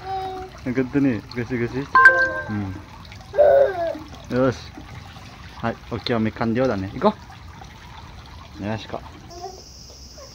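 A small child babbles and chatters excitedly close by.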